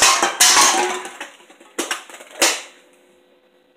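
Aluminium cans roll and knock on a wooden floor.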